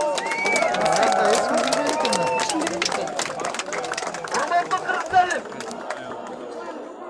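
A crowd of men talk over one another outdoors.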